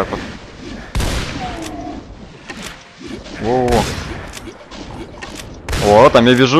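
A shotgun fires with loud booming blasts.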